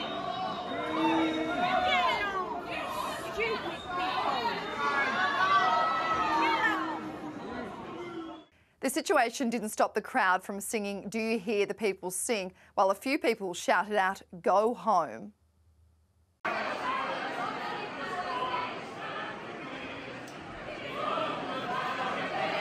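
A crowd shouts and jeers in a large echoing hall.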